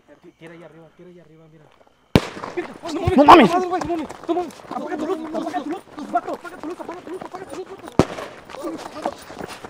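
Footsteps crunch on a dirt ground.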